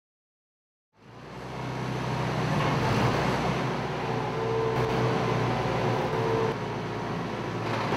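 A diesel engine of a large forklift rumbles steadily outdoors.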